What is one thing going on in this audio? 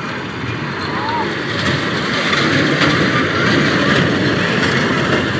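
A fairground ride whirs and rattles as small cars roll along a track.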